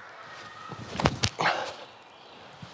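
A disc is thrown with a sharp whoosh.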